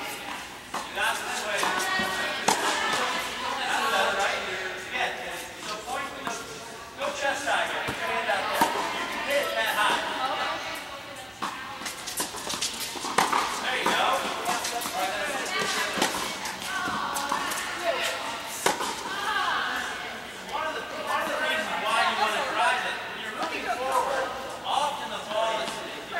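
Young women talk and call out across an indoor court.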